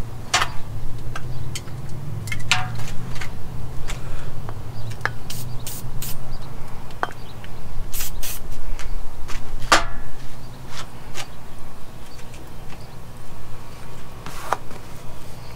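Metal parts clink and click in a man's hands.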